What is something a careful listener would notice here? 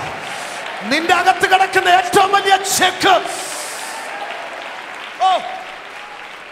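A man speaks loudly and with animation through a microphone in an echoing hall.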